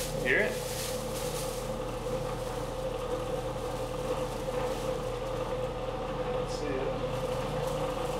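A machine motor hums steadily nearby.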